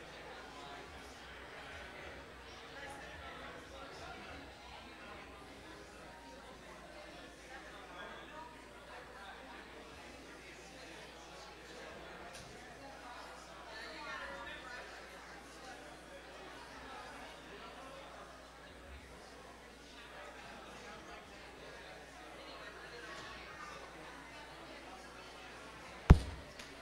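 A crowd of men and women chat in a large room, many voices overlapping.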